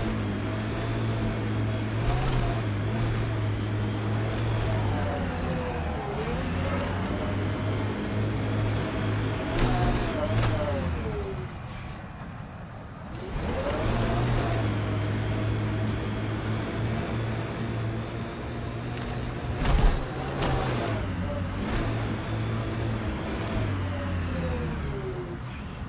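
A six-wheeled rover's engine hums and whines as it drives over rough ground.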